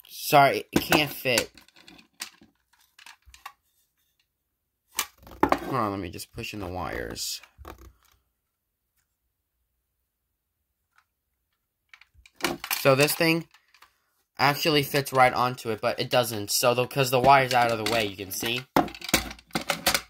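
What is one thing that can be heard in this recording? Plastic and metal parts click and rattle in hand.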